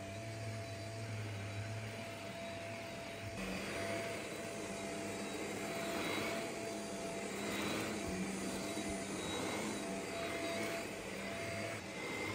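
A vacuum cleaner hums steadily, close by.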